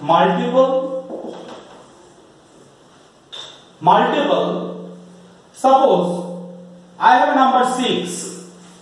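A man speaks in a calm, teaching voice.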